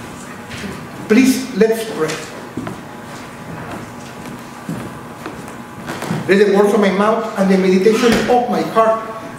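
An elderly man speaks calmly into a microphone in a small echoing room.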